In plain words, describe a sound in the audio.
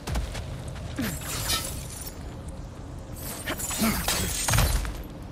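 An axe strikes into ice with sharp thuds.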